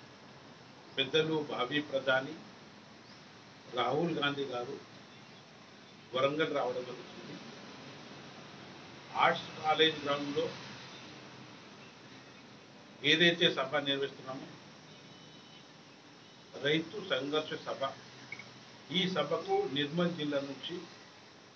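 An elderly man speaks calmly into a nearby microphone, in short phrases with pauses.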